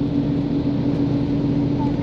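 A truck's engine rumbles as it passes close by.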